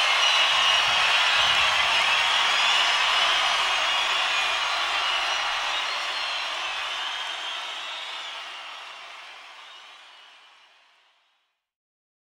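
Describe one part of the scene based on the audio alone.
A huge crowd cheers and whistles across a wide open space, slowly fading away.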